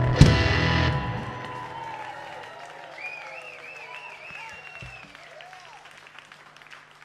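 A band hits a loud chord that rings out and slowly fades.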